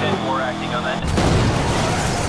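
A car crashes with a loud smash of breaking metal and glass.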